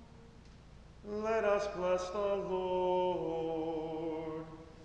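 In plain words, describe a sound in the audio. A man sings a chant in a large, echoing hall.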